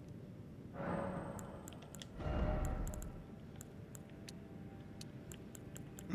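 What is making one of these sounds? Menu selections click in quick, short ticks.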